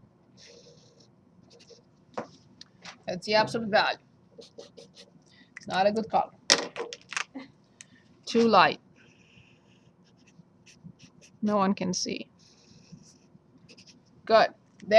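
A felt-tip marker squeaks across paper.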